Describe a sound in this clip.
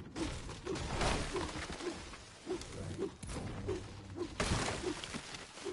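A pickaxe strikes a tree trunk with sharp thwacks.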